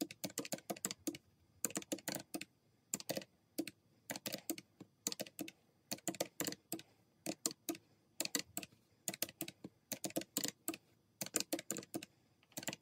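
Fingers tap quickly on calculator buttons in short bursts.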